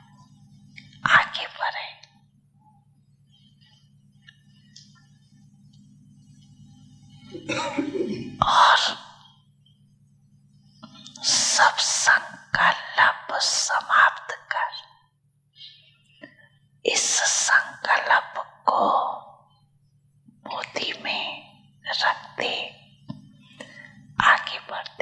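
An elderly man speaks calmly into a microphone, heard through a loudspeaker.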